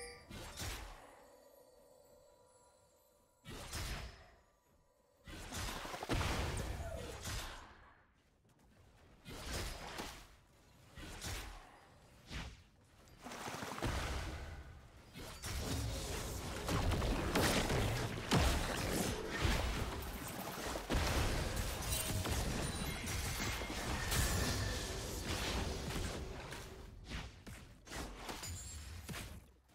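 Magic blasts and weapon hits clash in a frantic video game battle.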